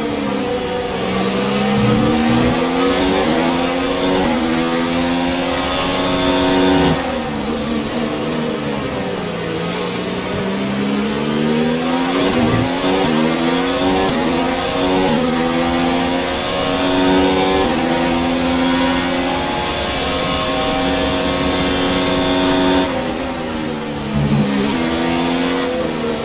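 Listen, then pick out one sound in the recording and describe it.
Gears shift with quick sharp changes in engine pitch.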